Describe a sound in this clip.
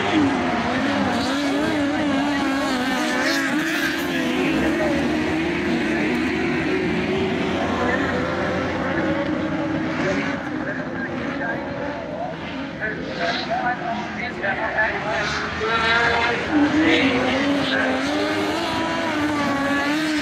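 Race car engines roar and rev loudly outdoors.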